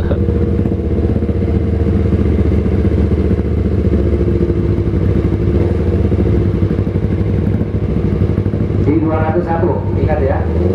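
A motorcycle engine idles loudly close by with a steady throbbing rumble.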